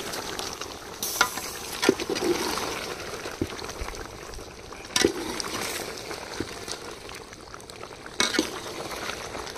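A metal spoon scrapes and knocks against a metal pot.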